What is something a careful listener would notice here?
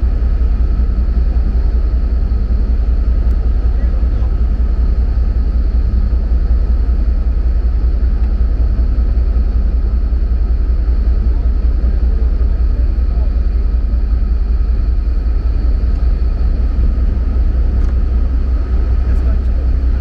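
A ship's engine rumbles steadily, low and loud.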